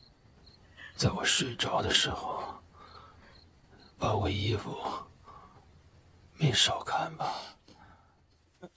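A young man speaks weakly and drowsily close by.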